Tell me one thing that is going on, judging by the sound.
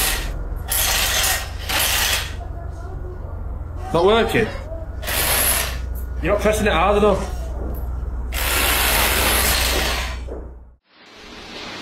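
A rotary hammer drill pounds loudly into a concrete floor.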